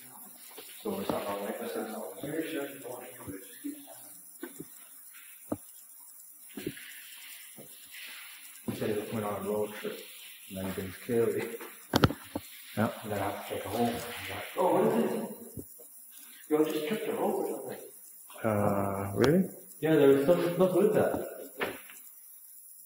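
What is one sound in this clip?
A man talks with animation close by, his voice echoing in a large stone tunnel.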